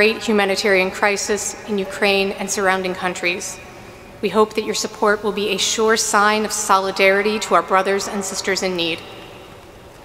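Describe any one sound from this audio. A young woman sings into a microphone in a large echoing hall.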